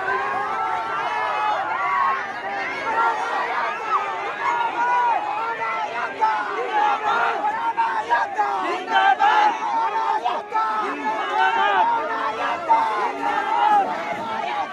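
Metal barricades rattle and clank as a crowd pushes them.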